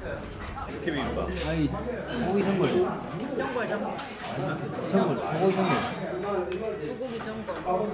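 An older man talks calmly nearby.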